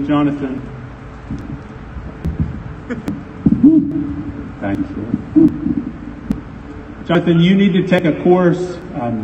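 A middle-aged man speaks through a microphone and loudspeakers.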